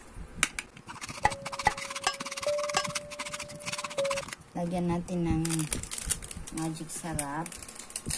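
A fork beats eggs in a bowl, clinking rapidly against its sides.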